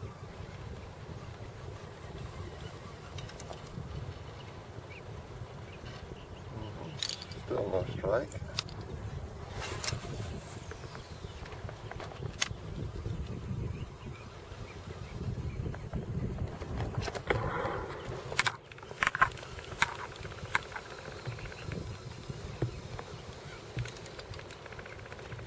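Small waves lap against the hull of a kayak.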